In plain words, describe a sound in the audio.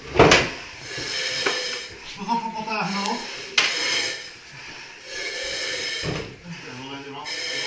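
Firefighters breathe loudly through masks, with a hissing air valve on each breath.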